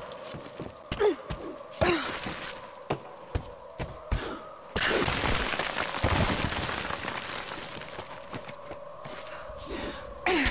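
Hands and boots scrape and knock against a stone wall during climbing.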